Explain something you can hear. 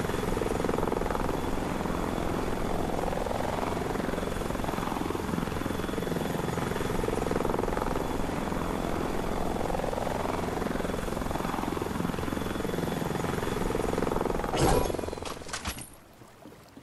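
A helicopter's rotor whirs loudly and steadily.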